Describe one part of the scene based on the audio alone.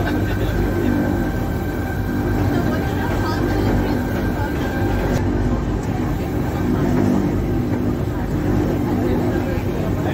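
A funicular car rumbles and hums steadily along its track.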